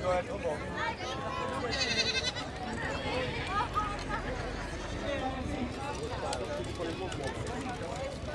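A crowd of men and women chatters along a street outdoors.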